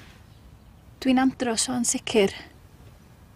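A young woman speaks softly and anxiously, close by.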